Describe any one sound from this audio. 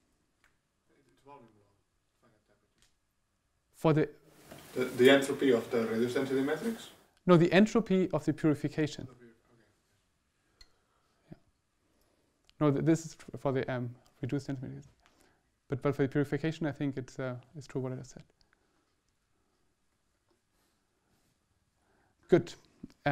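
A young man lectures calmly through a microphone in an echoing hall, pausing between phrases.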